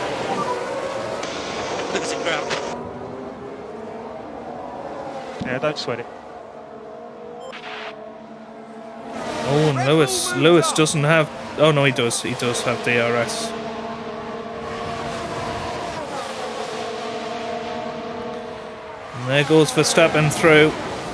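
Racing car engines roar and whine as cars speed past.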